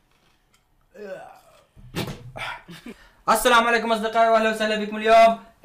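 A man cries out loudly and strains his voice close by.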